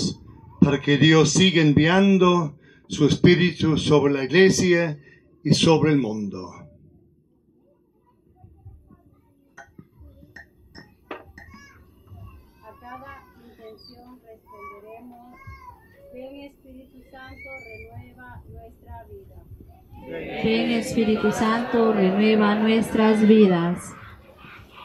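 An elderly man speaks calmly through a microphone and loudspeaker.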